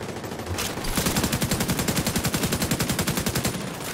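A rifle fires in a rapid automatic burst.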